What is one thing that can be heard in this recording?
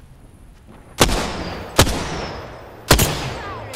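A rifle fires single sharp shots.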